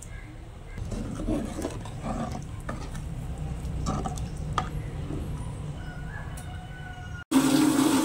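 A spoon stirs liquid in a metal pan.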